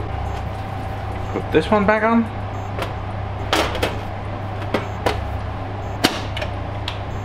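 A metal cover scrapes and clanks as it is set down and slid shut.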